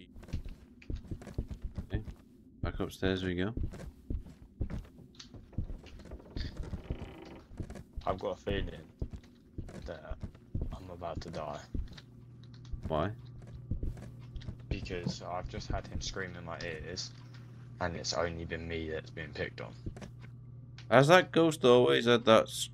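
Footsteps creak on wooden floorboards.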